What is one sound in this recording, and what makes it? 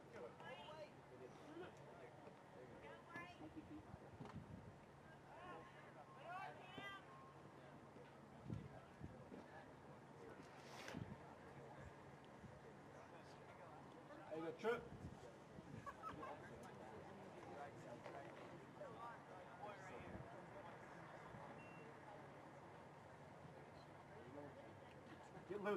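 A small crowd of spectators talks and calls out nearby, outdoors.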